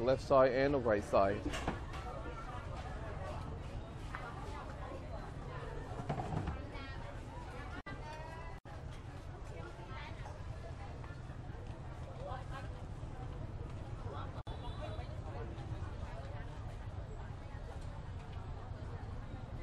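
Men and women chatter nearby in a busy outdoor street.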